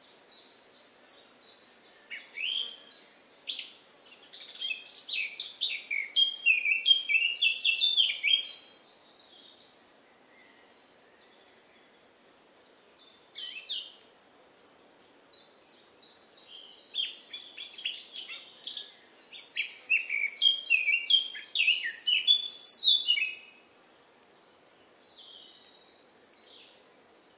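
A squirrel rustles softly in the grass.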